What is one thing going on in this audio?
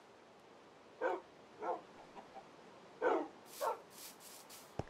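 Wolves bark and pant in short bursts.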